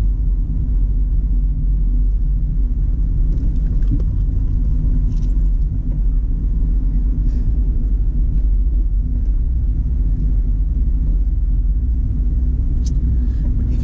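Wind buffets and rumbles steadily past an open-top car.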